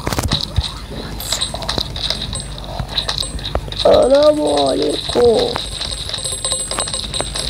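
Quick electronic blips pop repeatedly as items are collected in a game.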